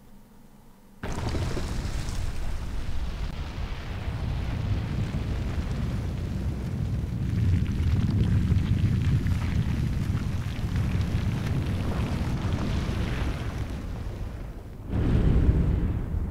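A large stone structure rumbles deeply as it rises out of sand.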